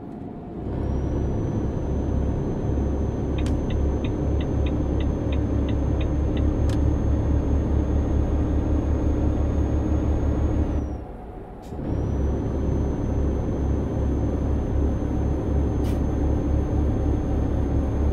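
A heavy diesel truck engine drones while cruising on a highway.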